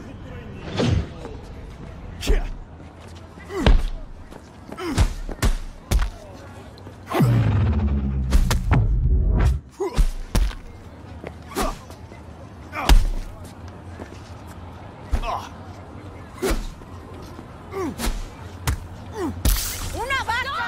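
Fists land heavy punches on a man.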